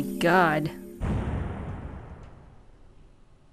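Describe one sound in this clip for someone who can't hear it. A heavy stamp thuds down and its echo slowly fades.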